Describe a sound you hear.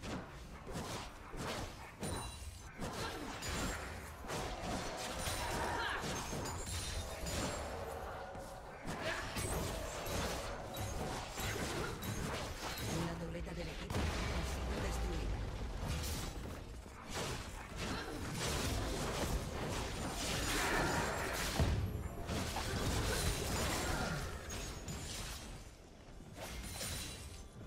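Magic blasts, clashing blows and bursts crackle and boom in a busy fight.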